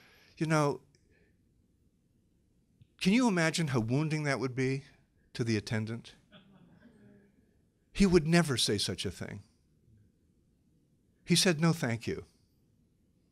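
An elderly man speaks calmly into a microphone in bursts with pauses.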